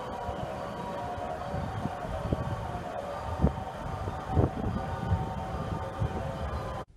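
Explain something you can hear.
A diesel train engine idles with a steady low rumble and hum close by.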